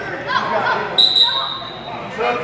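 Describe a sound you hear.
A referee's whistle blows briefly.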